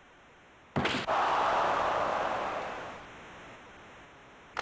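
A crowd cheers loudly, then fades.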